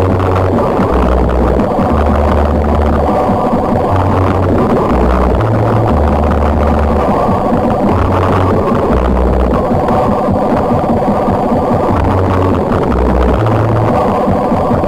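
Fast electronic dance music plays with a heavy, pulsing bass line.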